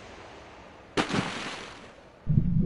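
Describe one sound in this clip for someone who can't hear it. Water splashes and churns.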